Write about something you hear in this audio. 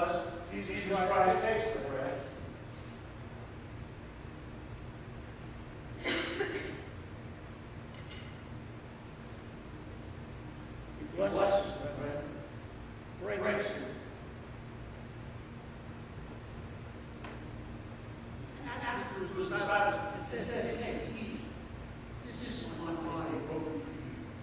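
A man speaks slowly and solemnly through a microphone in a large hall.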